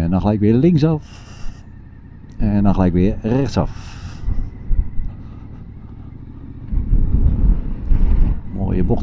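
A motorcycle engine runs close by, revving up and down.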